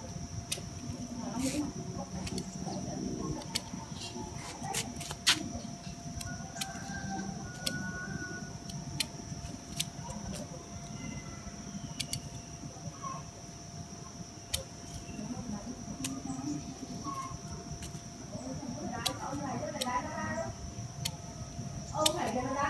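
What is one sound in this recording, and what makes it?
Leaves rustle as a branch is handled.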